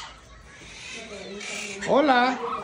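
A macaw makes a loud, rising call.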